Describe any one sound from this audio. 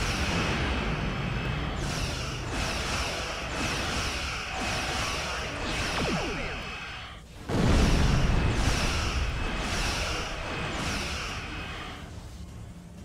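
Laser weapons fire in bursts.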